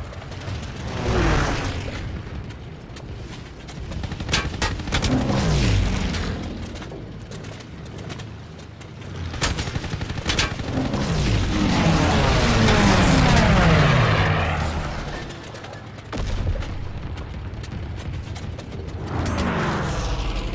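Planes roar past with a falling, whooshing pitch.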